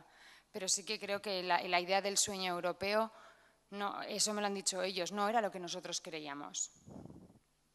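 A woman speaks calmly into a microphone, heard through loudspeakers in a large room.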